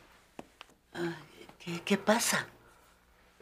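A middle-aged woman speaks in alarm.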